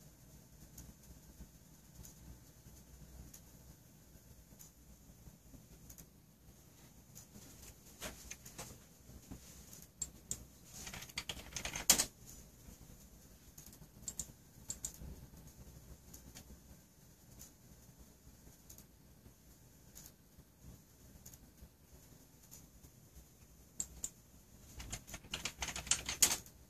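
Candle wicks crackle and sputter softly.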